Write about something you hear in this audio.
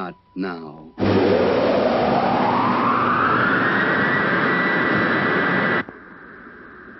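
A rocket engine roars loudly with a rising whine.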